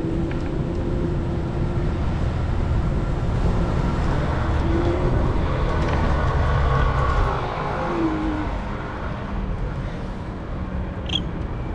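Traffic rumbles steadily nearby on a city street.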